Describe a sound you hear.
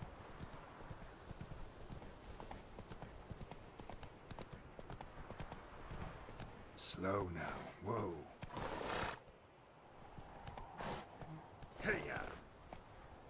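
A horse's hooves thud steadily on a dirt path.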